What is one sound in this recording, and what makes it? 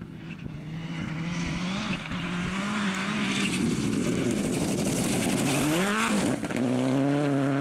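Tyres crunch and spray gravel on a dirt track.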